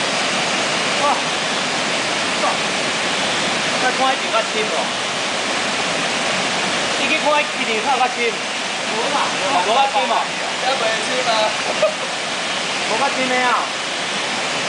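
A young man calls out loudly over the rushing water.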